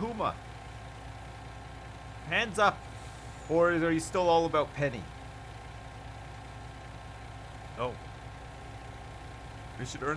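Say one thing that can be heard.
A truck engine idles with a low, steady hum.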